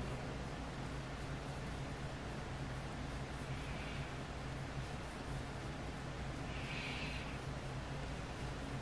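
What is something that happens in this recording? A crochet hook and yarn rustle softly as hands loop stitches.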